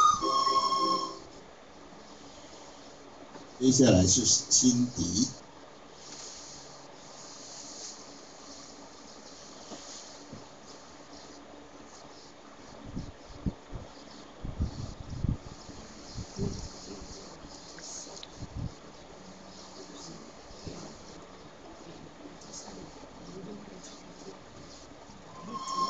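Ceiling fans whir steadily overhead.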